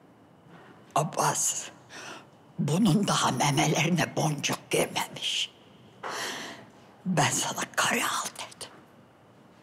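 An elderly woman speaks with emotion close by.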